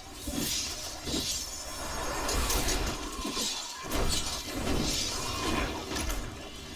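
Game spells and hits crackle and whoosh.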